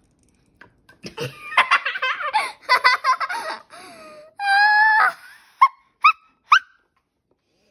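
A young girl squeals and laughs excitedly close by.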